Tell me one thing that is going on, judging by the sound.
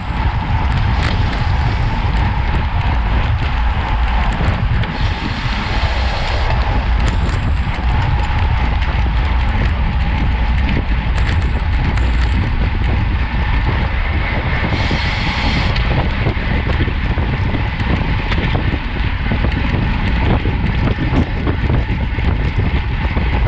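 Strong wind buffets the microphone of a moving bicycle.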